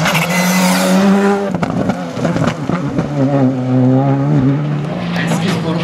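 A rally car engine roars and revs as the car speeds past.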